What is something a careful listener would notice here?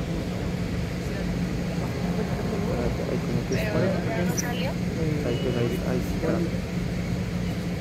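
A mariachi band plays trumpets and strings outdoors.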